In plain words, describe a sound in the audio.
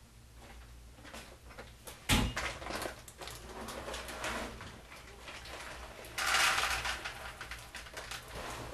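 A paper bag rustles and crinkles as it is handled.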